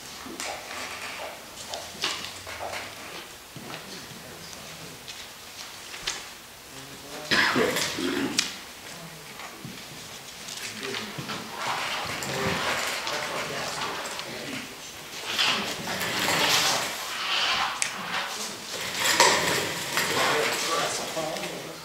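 Men talk in an echoing room, their voices somewhat distant.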